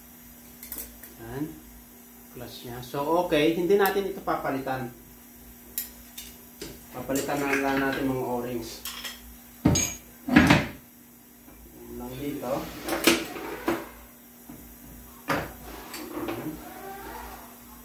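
Metal parts clink and clank on a workbench.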